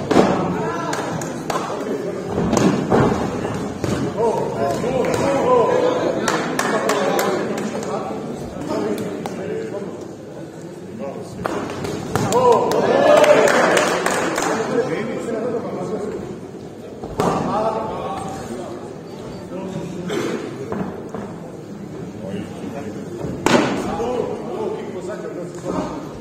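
A crowd in a large hall cheers and shouts.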